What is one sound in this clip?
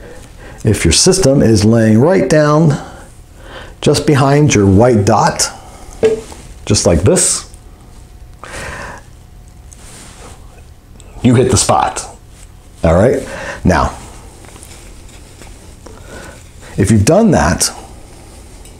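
A man talks calmly and clearly, close to a microphone.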